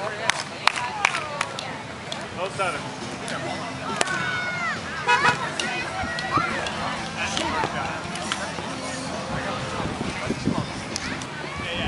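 A volleyball is struck with dull slaps.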